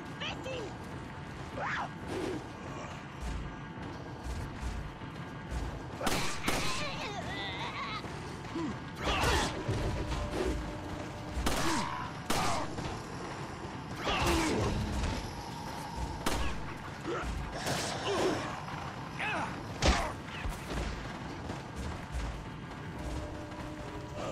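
Men shout and groan gruffly nearby.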